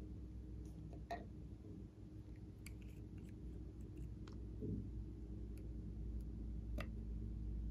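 Small plastic caps click and tap as they are opened.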